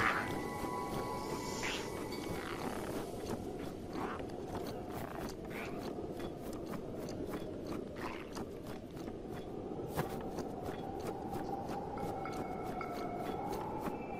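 Footsteps crunch quickly through snow.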